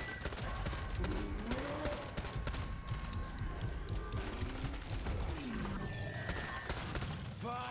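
Gunshots crack in an echoing tunnel.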